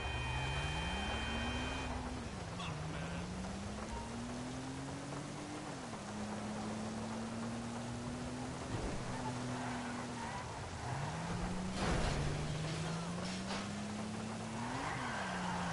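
A car engine hums and revs up and down as it drives.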